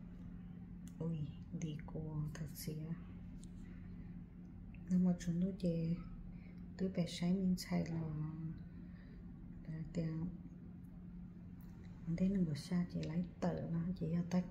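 A young woman speaks calmly and softly, close by.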